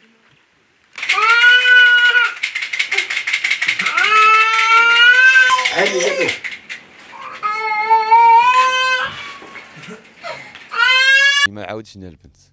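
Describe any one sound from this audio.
A woman speaks in a high, tearful, wailing voice.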